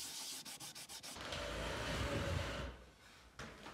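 A cloth rubs briskly over wood.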